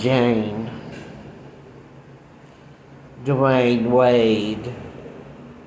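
An older man speaks calmly and close by.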